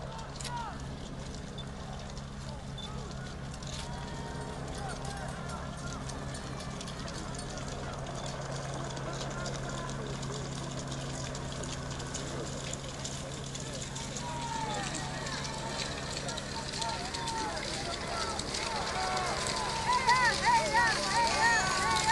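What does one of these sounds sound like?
A crowd of men and women chatters and cheers outdoors, growing louder toward the end.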